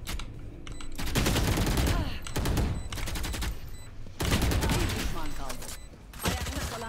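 Gunshots crack in rapid bursts from a video game.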